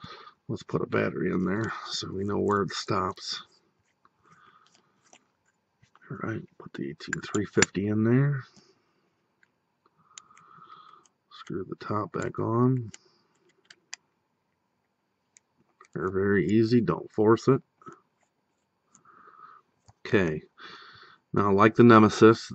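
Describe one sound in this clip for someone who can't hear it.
Small metal parts click and scrape softly together.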